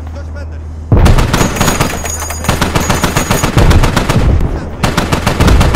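A heavy cannon fires in rapid bursts.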